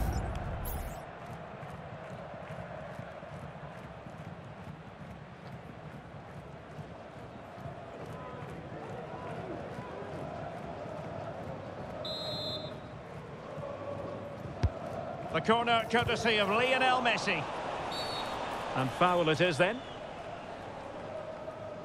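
A stadium crowd murmurs and cheers steadily in the background.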